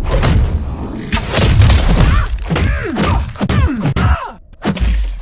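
An energy blast bursts with a loud rushing crackle.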